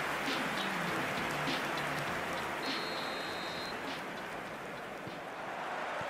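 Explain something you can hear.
A large stadium crowd roars and cheers steadily.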